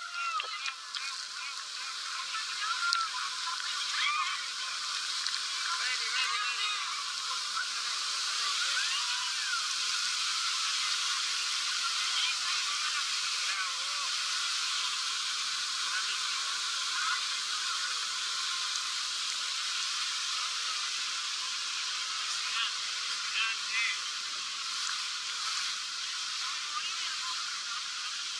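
Water rushes and sprays loudly all around.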